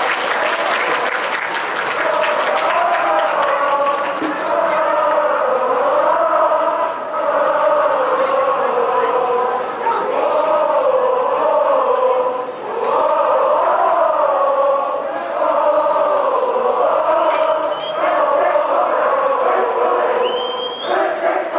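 A large crowd sings and chants loudly in unison.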